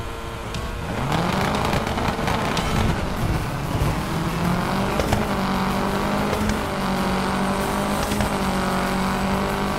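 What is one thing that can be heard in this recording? A rally car engine roars and revs as the car accelerates.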